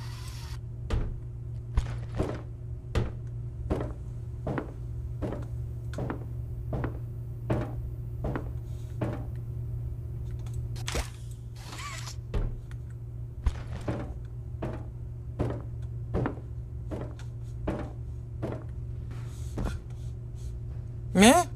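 Footsteps thump in a steady rhythm along a metal vent.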